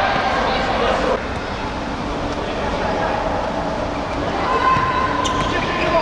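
A futsal ball is kicked across a court in an echoing hall.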